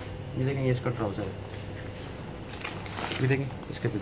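Cloth rustles as it is unfolded and laid flat.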